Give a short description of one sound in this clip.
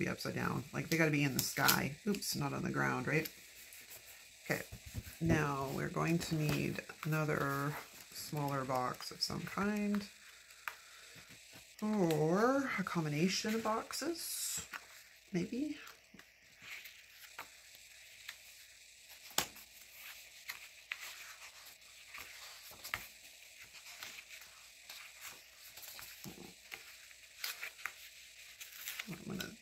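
Paper sheets rustle and crinkle as they are handled close by.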